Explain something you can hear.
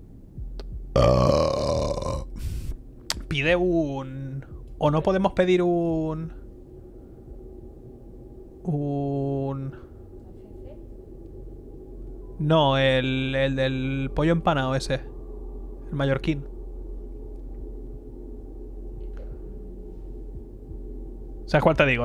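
A young man speaks with animation into a close microphone, in bursts with pauses.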